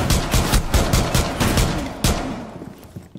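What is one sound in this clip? A gun fires in rapid bursts at close range.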